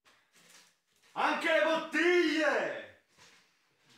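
A young man shouts loudly through cupped hands.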